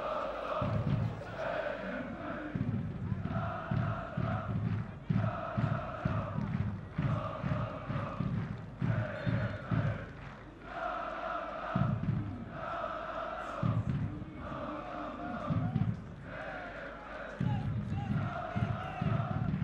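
A large stadium crowd chants and sings in rhythm.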